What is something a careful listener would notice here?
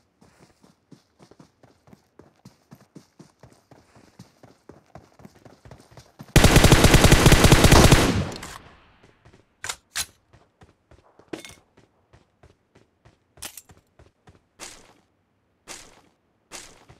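Footsteps patter quickly across a hard floor.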